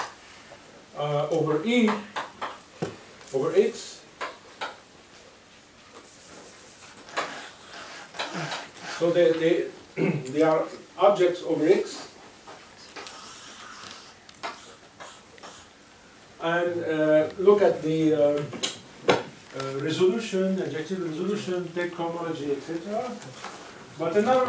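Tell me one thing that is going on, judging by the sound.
A man speaks calmly in a lecturing tone.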